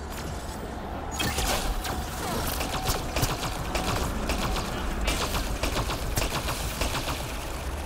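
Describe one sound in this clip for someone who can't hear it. Explosions boom and crackle with fire.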